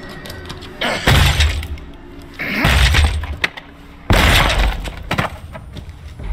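A window pane rattles and bangs in its frame.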